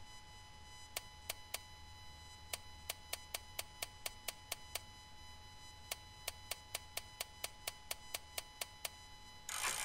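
A safe's combination dial clicks as it is turned.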